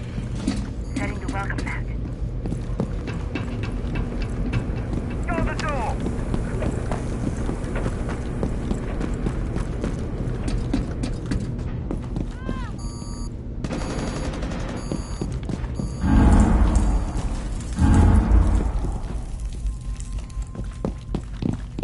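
Quick footsteps thud and tap on a hard floor.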